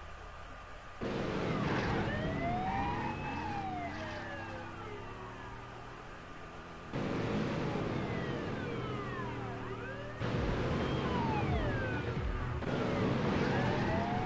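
A police siren wails, rising and falling in pitch.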